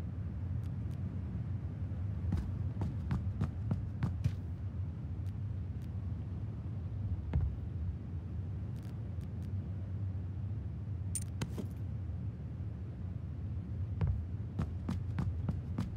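Footsteps tap across a hard floor indoors.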